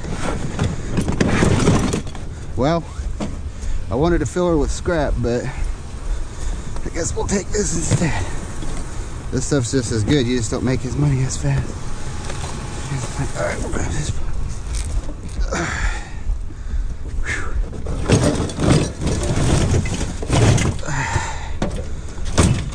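A plastic tub thumps down onto a truck bed.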